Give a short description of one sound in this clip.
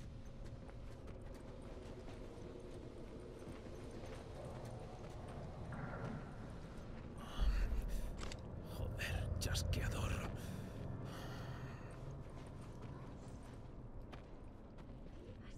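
Footsteps scuff slowly over concrete.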